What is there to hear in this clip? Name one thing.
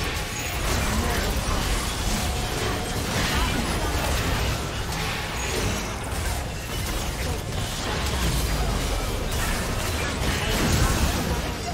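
Spell effects and weapon hits crackle and clash in a busy game battle.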